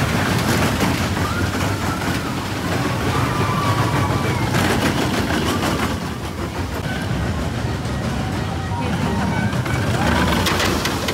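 Ride cars rumble and clatter along a metal track.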